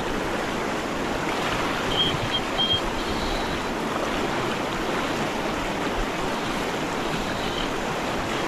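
A river rushes loudly over rapids close by.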